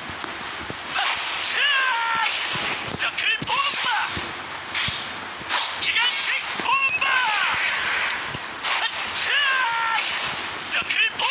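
Magic attacks whoosh and burst in quick succession.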